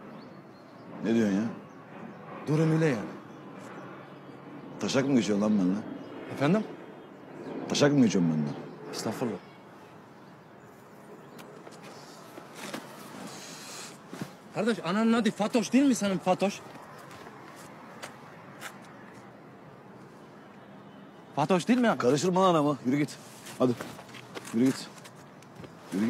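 An older man talks close by.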